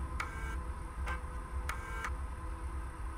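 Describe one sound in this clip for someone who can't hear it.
Short electronic beeps chirp from a computer terminal.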